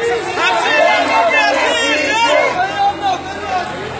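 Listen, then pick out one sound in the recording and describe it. A woman shouts angrily nearby.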